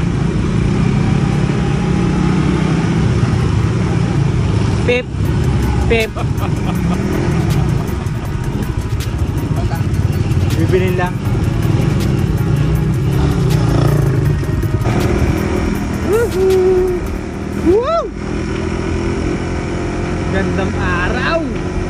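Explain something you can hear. A small-displacement motorcycle engine hums as the bike cruises at low speed.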